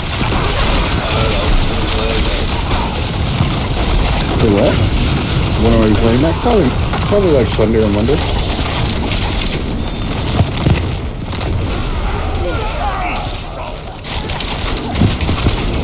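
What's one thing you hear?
Magic blasts and crackling hits ring out in a fast fight.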